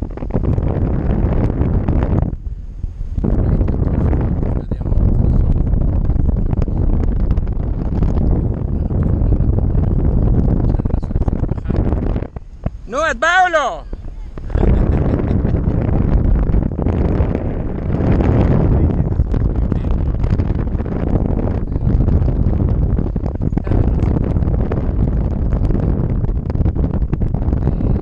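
Strong wind roars and buffets against the microphone.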